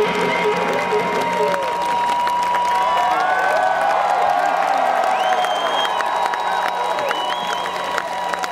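A rock band plays loudly in a large open-air arena.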